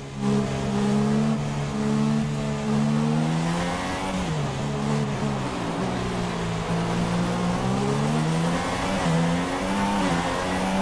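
A racing car engine whines at high revs, dropping and rising in pitch as the driver shifts gears and brakes.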